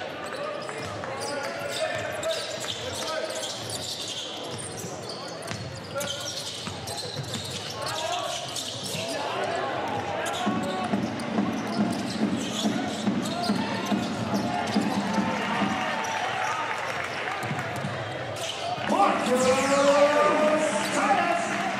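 A crowd chants and cheers in a large echoing hall.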